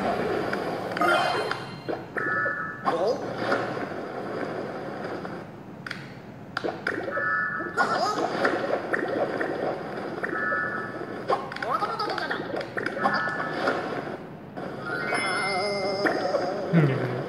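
Bright chimes ring out from a tablet game as points are collected.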